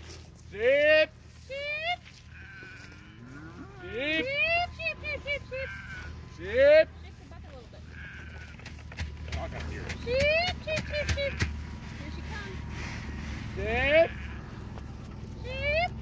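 Goats bleat loudly nearby, over and over, in rising, wavering calls.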